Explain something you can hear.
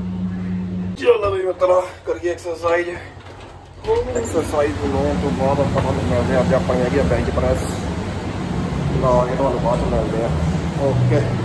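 A man talks close to a phone microphone.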